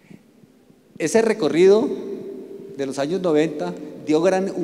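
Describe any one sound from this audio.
An older man speaks through a microphone and loudspeakers in a large echoing hall.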